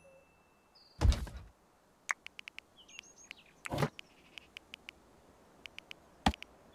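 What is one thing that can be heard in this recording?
Short game interface clicks sound now and then.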